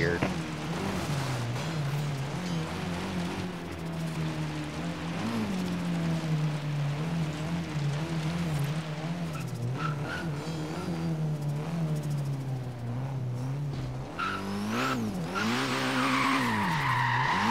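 A car engine roars and revs up and down steadily.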